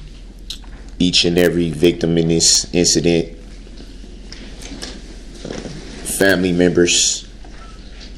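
A man speaks in short bursts with pauses.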